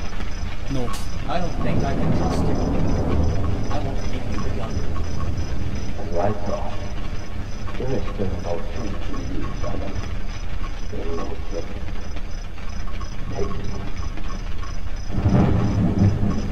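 A man speaks calmly and in a low voice.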